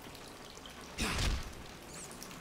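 A heavy weapon swings and thuds into flesh.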